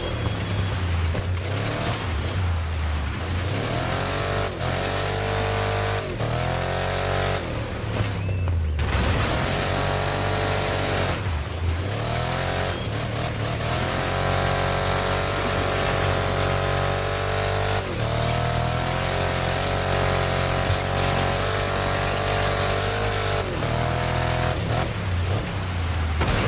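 Tyres crunch and skid over loose dirt.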